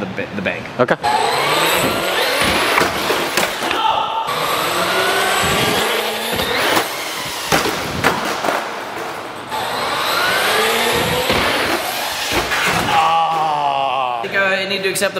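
A toy car's electric motor whines as it speeds and climbs ramps.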